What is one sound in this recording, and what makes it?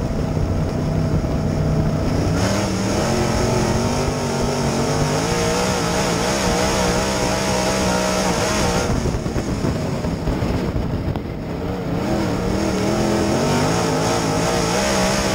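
A race car engine roars loudly close by, its pitch rising and falling as it revs.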